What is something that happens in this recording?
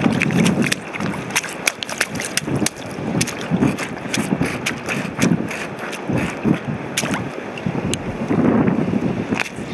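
Shoes splash and scuff on wet rock.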